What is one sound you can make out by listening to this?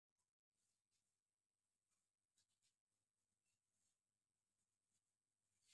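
A marker squeaks and scrapes faintly across a whiteboard.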